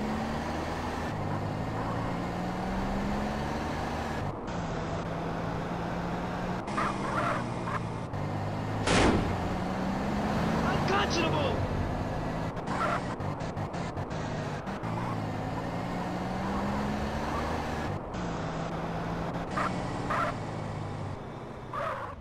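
A car engine hums steadily, its pitch rising and falling as it speeds up and slows down.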